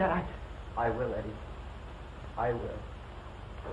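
A man speaks quietly and steadily, as if reading aloud.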